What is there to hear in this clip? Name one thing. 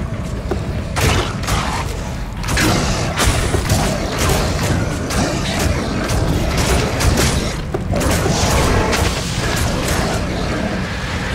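Spell blasts crackle and burst again and again.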